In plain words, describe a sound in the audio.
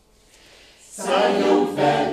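A choir of women and men sings together.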